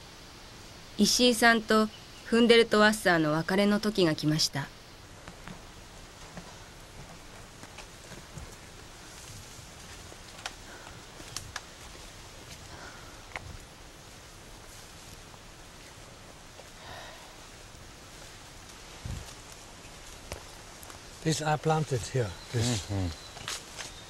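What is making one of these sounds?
An elderly man speaks calmly outdoors.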